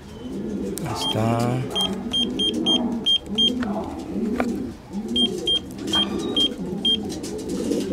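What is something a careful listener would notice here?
A small electronic device beeps in short high tones as its buttons are pressed.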